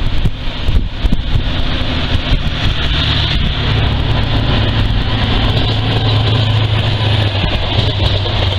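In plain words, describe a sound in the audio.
Train wheels rumble and clatter over the rails.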